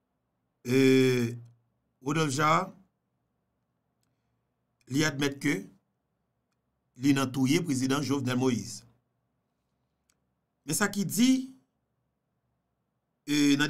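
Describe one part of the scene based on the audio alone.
A man speaks into a microphone close by, in short bursts with pauses.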